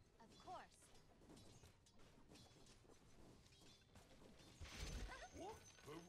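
Game spells and weapons clash and whoosh in a battle.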